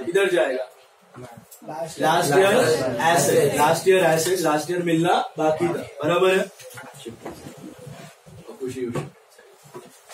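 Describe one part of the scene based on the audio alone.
A young man speaks clearly and with animation, reading aloud.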